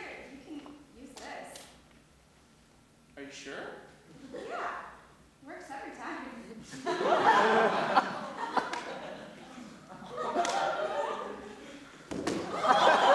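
A young woman speaks with feeling in a large echoing hall.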